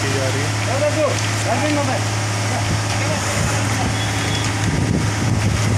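Wet concrete splashes out of a pump hose.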